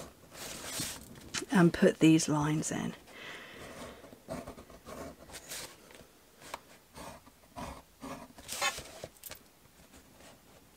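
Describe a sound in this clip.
A metal stylus scratches along paper against a ruler.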